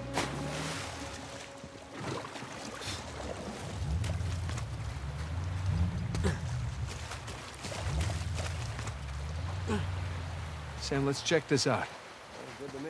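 Waves wash and foam onto a beach.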